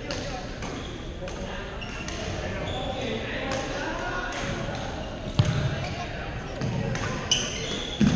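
Shoes squeak on the hall floor.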